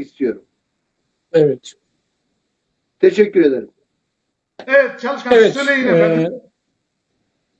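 A man speaks in short bursts over an online call.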